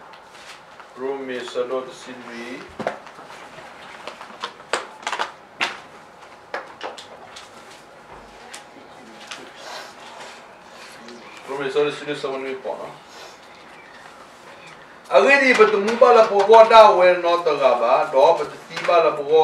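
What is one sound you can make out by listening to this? A middle-aged man speaks calmly nearby, with pauses.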